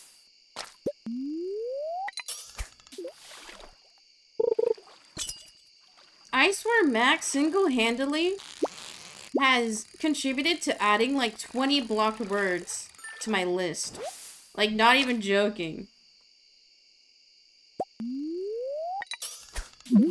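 A fishing line whooshes out with a quick rising tone as a cast is made.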